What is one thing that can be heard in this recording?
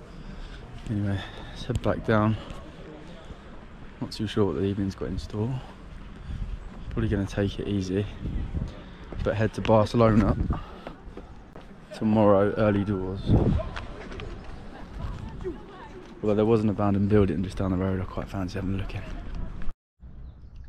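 A young man talks calmly and close, with pauses.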